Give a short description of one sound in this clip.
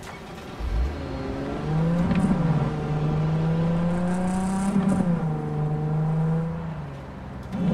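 A car engine revs and roars, shifting through gears as the car speeds along a street.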